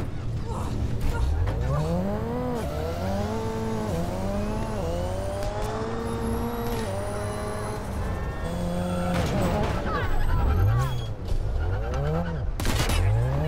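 A car engine revs and roars as it speeds up.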